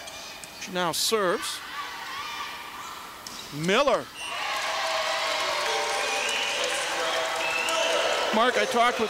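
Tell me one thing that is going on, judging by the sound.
Young women shout excitedly on the court.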